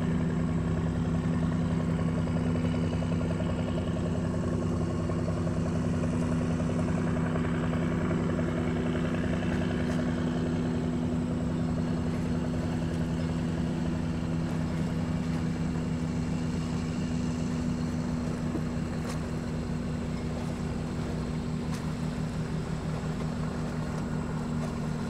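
A motorboat engine drones steadily across the water.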